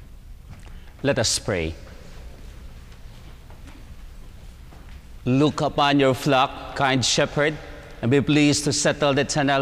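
A man chants a prayer solemnly into a microphone.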